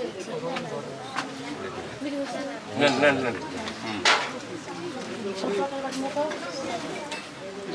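Several men talk and laugh together close by.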